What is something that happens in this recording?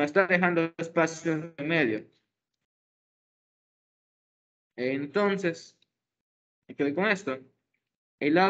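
A young man speaks calmly over an online call, with pauses.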